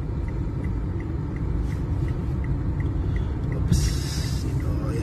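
A car engine hums steadily with a low rumble, heard from inside the car.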